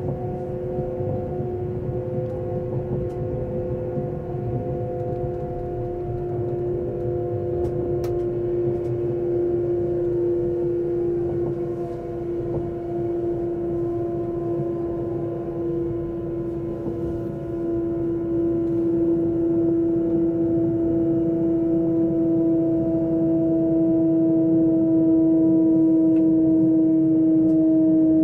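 A train's motor hums with a steady, slowly falling whine.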